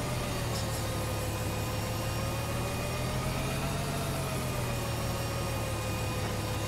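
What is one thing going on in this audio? A tractor engine hums steadily at low speed.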